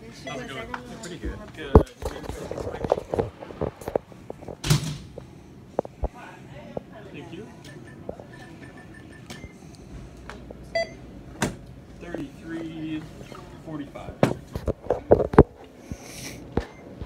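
A phone bumps and rustles as it is handled.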